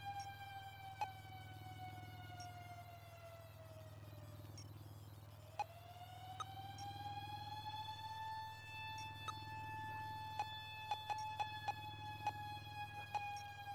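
Short electronic clicks blip as a selection moves from row to row.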